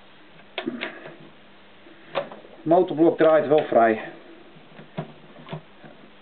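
A hand tool clicks and clinks against metal.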